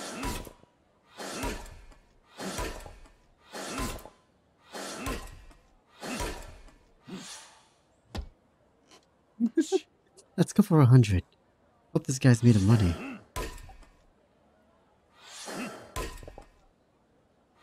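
An axe splits wood with sharp, regular chops.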